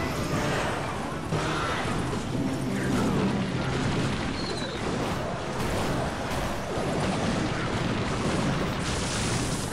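Game music plays with battle sound effects and clashing blows.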